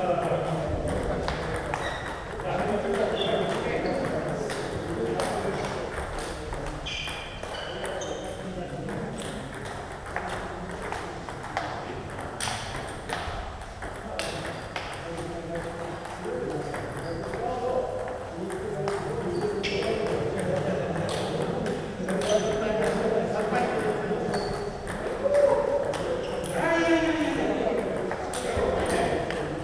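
A table tennis ball clicks back and forth off paddles and the table, indoors.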